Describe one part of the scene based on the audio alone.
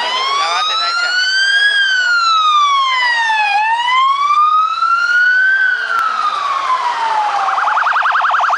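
A police siren wails up and down close by.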